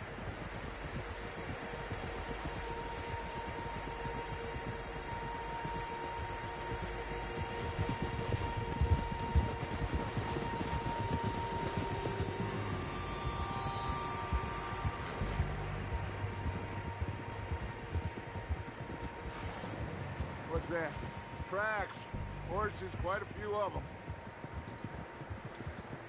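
Wind blows steadily through a snowstorm.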